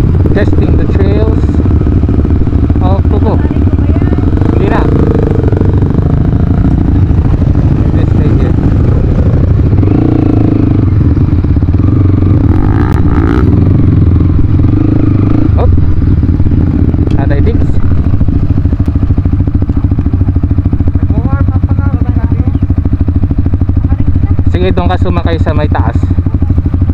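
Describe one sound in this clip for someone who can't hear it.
A dirt bike engine idles and revs close by.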